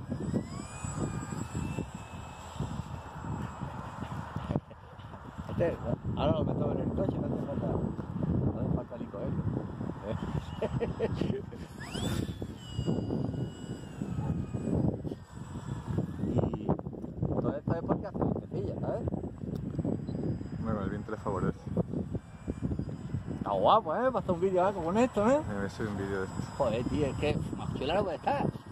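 A small propeller motor whines overhead as a model plane flies past.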